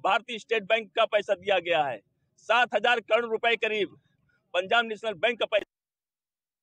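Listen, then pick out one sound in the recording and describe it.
A middle-aged man speaks firmly into a microphone, close by.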